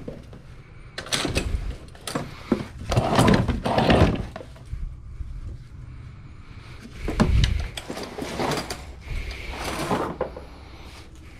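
Plastic and fabric items rustle and clatter as a hand rummages through them close by.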